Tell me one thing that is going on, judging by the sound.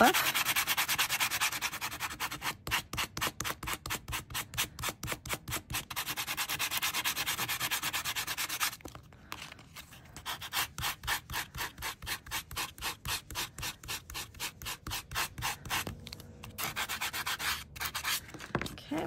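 A sanding block rubs quickly back and forth over a metal plate.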